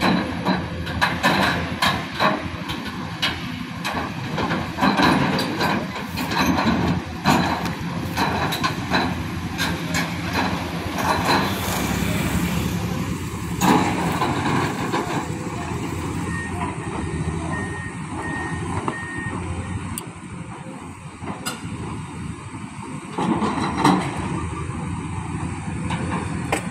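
An excavator bucket scrapes and knocks against rocks.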